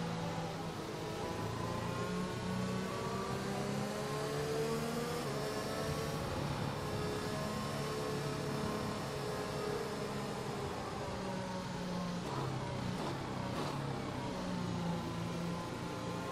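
A racing car engine whines steadily, its pitch rising and falling with the gear changes.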